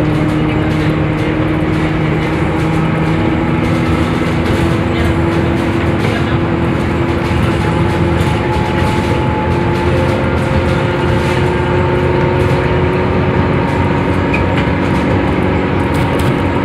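A bus rattles and rumbles over the road.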